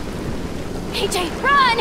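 A young girl shouts urgently.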